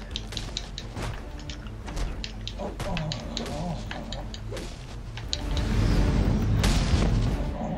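Punches and kicks land with sharp thuds in a fast brawl.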